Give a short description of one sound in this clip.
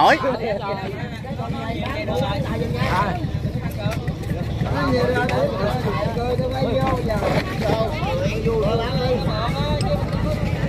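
Several men talk and call out to each other nearby, outdoors.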